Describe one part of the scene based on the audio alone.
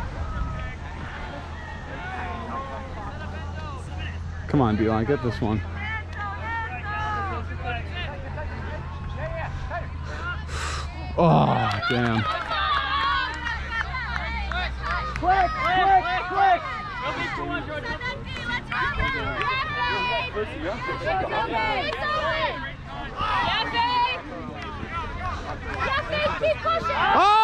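Young women nearby chat and cheer outdoors.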